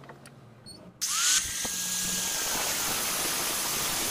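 An angle grinder whines loudly as it cuts through a metal rod.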